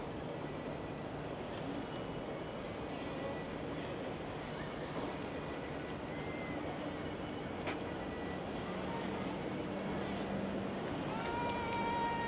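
Bicycles roll past on a paved path outdoors.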